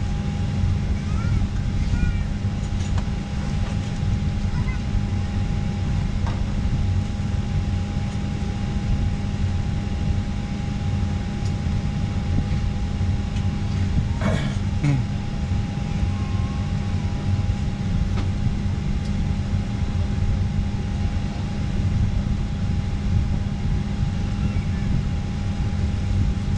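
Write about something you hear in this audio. A jet engine roars steadily from inside an aircraft cabin.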